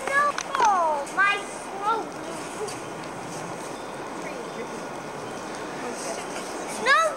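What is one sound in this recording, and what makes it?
Children shout and call out excitedly outdoors.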